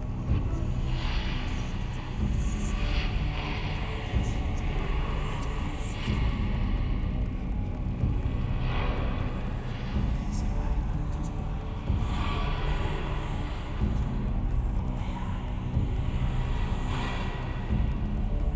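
A man breathes slowly and heavily nearby.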